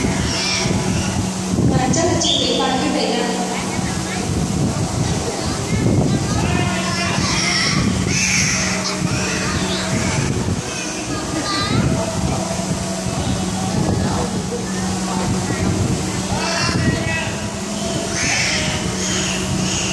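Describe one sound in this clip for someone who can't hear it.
A dolphin squeaks and whistles.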